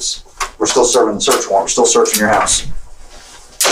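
A man speaks firmly nearby.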